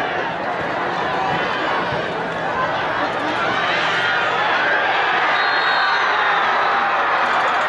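A large outdoor crowd cheers and shouts, growing louder.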